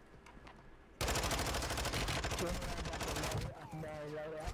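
Rapid gunfire rattles loudly in a video game.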